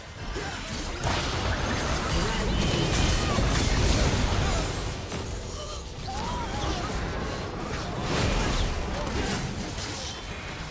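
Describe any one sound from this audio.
Magic blasts and impacts crackle and burst in a hectic fight.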